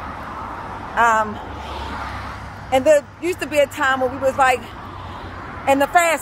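A woman speaks to a nearby microphone with animation, in short bursts.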